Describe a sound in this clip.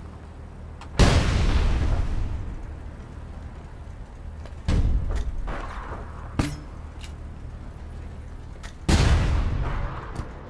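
Explosions boom several times, each followed by a rumbling tail.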